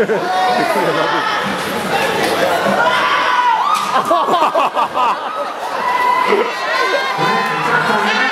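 A crowd of spectators shouts and cheers loudly in an echoing hall.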